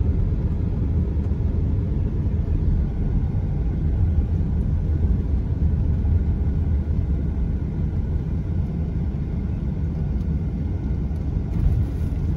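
A car engine hums steadily with low road rumble from inside the car.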